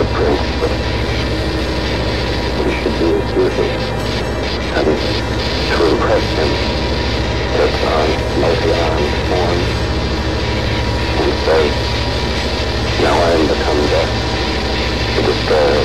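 A man speaks softly into a phone.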